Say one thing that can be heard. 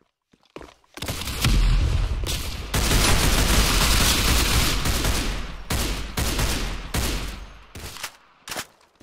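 A rifle fires in rapid bursts with loud echoing shots.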